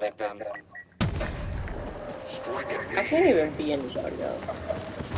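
Laser blasts fire amid a busy battle.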